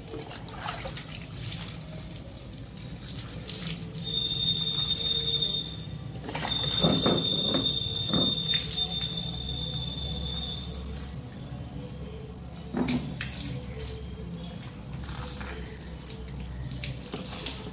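Water pours from a mug onto wet hair and splashes on the ground.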